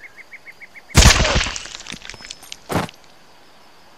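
A rifle fires a short burst of loud shots in an echoing space.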